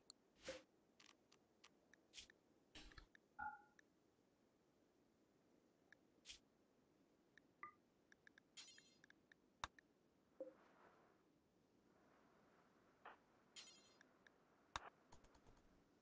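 Short soft clicks sound now and then as menu items are picked.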